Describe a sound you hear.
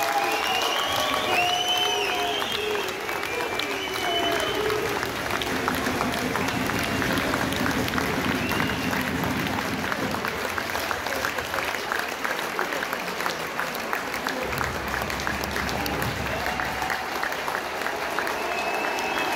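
A large stadium crowd cheers and chants loudly outdoors.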